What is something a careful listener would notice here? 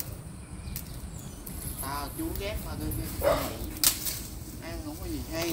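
Leafy plant stalks rustle and knock as they are pulled.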